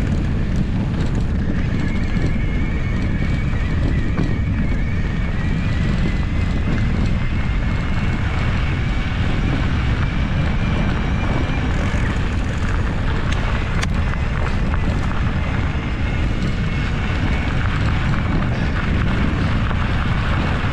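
Wind rumbles loudly across an open space outdoors.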